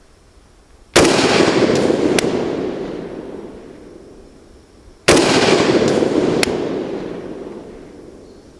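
A rifle fires loudly outdoors, its report echoing away.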